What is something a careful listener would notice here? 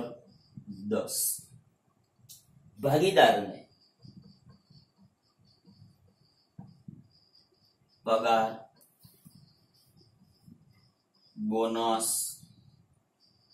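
A man speaks in short bursts, close by, explaining slowly.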